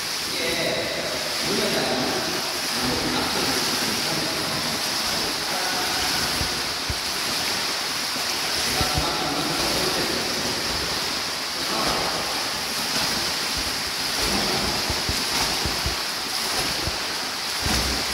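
A swimmer splashes through water in a large echoing hall.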